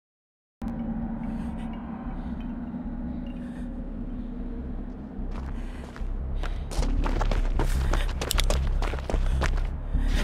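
Footsteps crunch steadily on a stone path.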